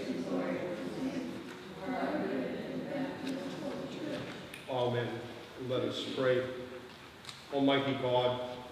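An elderly man chants slowly through a microphone in an echoing hall.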